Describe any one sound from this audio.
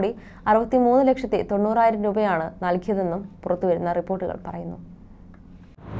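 A young woman speaks clearly into a microphone, reading out the news.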